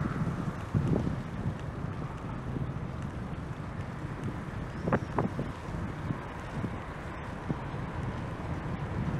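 Tyres hum on smooth asphalt.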